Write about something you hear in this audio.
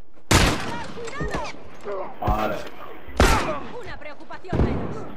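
Gunshots ring out in loud, sharp bursts.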